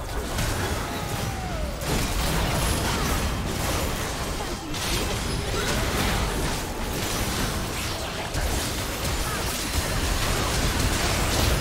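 Spell blasts, hits and explosions burst out in a fast game fight.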